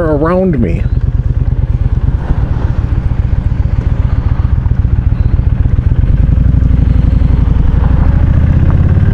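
A motorcycle engine rumbles close by with a fast, throbbing beat.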